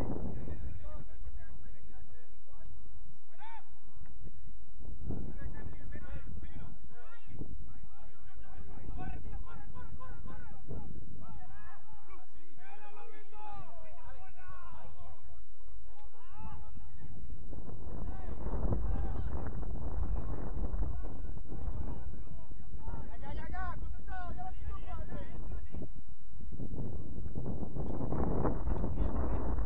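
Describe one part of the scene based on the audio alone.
Young women shout to each other in the distance across an open field.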